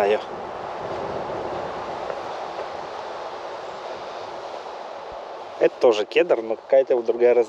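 Wind rustles softly through trees outdoors.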